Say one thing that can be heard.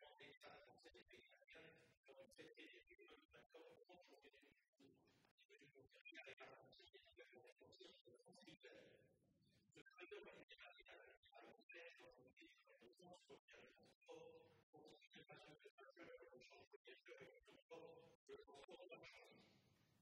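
An elderly man reads out a speech steadily into a microphone.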